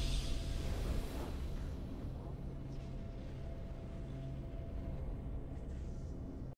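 A victory fanfare plays with a swelling orchestral chord.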